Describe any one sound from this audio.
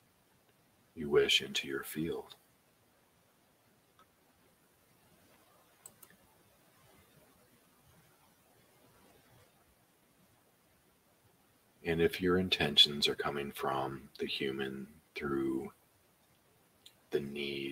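A man speaks calmly and closely into a microphone, pausing between phrases.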